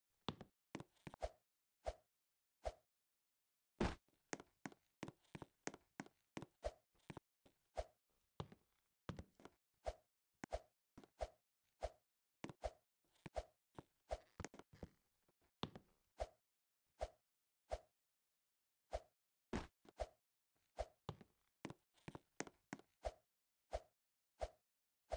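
Short game sound effects pop again and again.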